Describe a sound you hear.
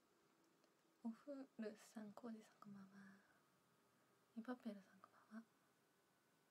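A young woman speaks softly and hesitantly close to a microphone.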